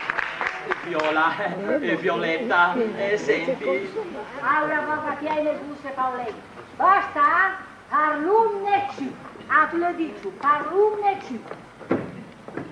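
A man speaks with animation on a stage.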